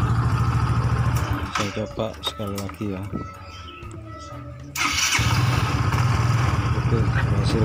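A scooter engine idles with a steady low rumble.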